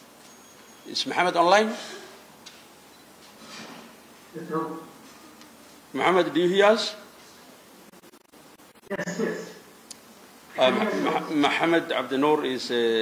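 A man speaks through a microphone in short phrases with pauses, echoing in a large hall.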